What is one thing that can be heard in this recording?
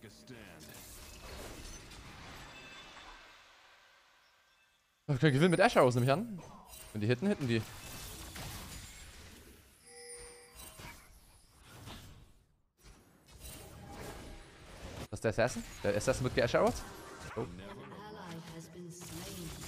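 Video game sound effects whoosh and chime.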